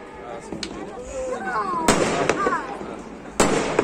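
A firework rocket whistles as it rises.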